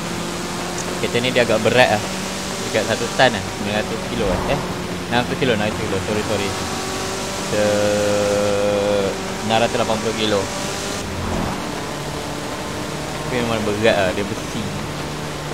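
A man talks with animation into a headset microphone, close by.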